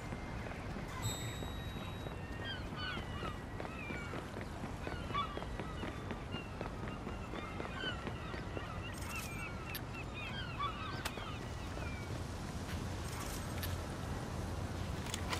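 Waves wash against a shore nearby.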